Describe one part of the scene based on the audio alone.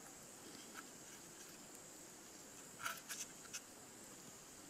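Fingers pick and crackle at rotten wood.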